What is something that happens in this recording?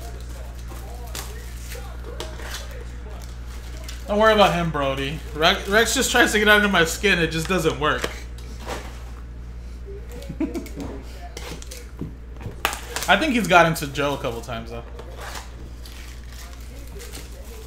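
Cardboard and foil wrappers crinkle and tear as cards are handled.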